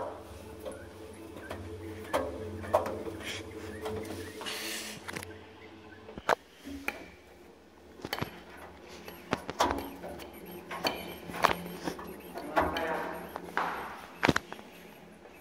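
Items tumble and knock against a metal drum.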